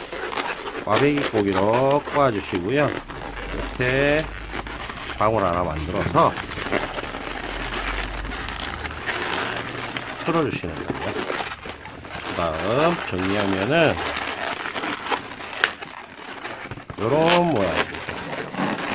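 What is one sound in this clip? Rubber balloons squeak sharply as hands twist and rub them.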